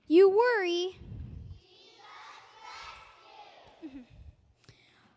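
A group of young children murmur and chatter softly.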